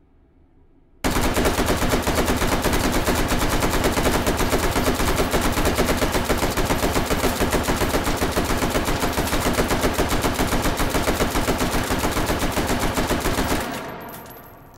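A rifle fires in a rapid, unbroken automatic burst that echoes in a large hall.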